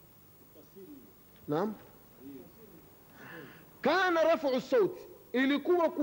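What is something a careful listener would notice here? A man speaks into a microphone with animation, his voice loud and close.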